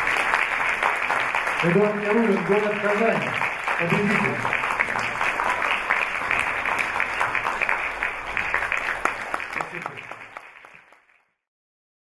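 An audience applauds in a large hall, then fades away.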